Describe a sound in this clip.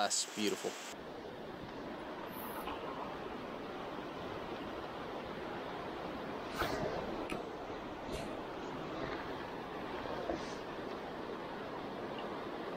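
A shallow stream ripples and flows.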